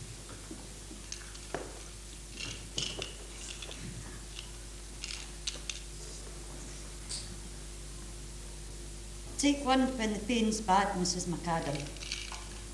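Small objects click softly in an elderly woman's hands.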